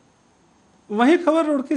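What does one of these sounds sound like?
A man speaks steadily and clearly into a microphone.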